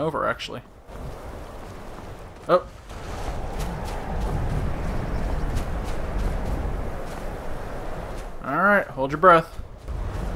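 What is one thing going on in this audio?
Water splashes around wading legs.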